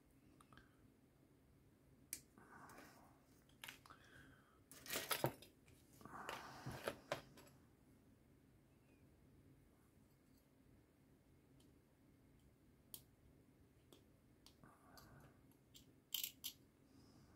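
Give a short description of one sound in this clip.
Sharp clicks sound as cutters snip small plastic parts from a frame.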